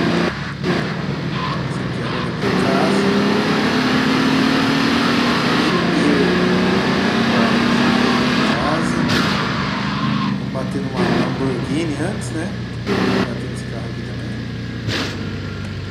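A car engine roars as a car speeds along.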